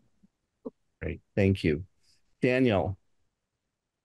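An elderly man speaks briefly over an online call.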